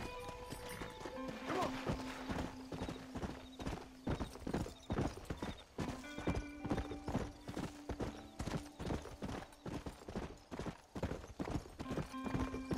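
Horse hooves thud rhythmically on the ground at a gallop.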